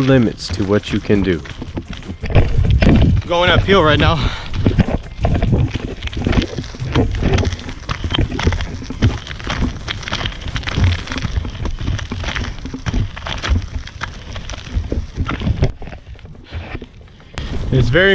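Wheels of inline skates roll and rattle over rough gravel.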